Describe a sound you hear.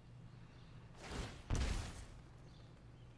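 A rumbling whoosh sound effect plays.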